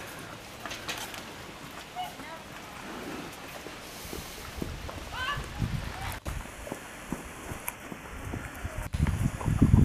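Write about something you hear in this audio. A bear chews food.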